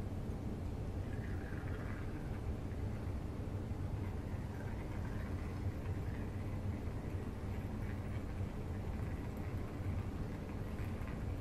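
Water trickles as it is poured from a small bottle.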